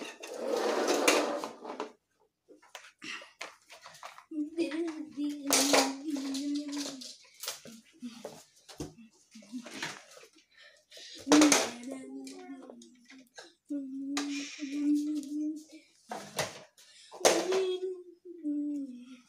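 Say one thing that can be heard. Plastic toys clatter and knock on a hard floor.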